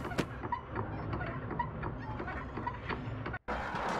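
A metal hatch creaks open.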